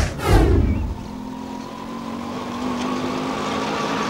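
A motorcycle engine hums close by.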